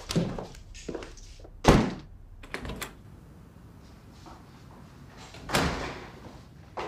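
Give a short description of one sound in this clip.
A door opens and shuts with a thud.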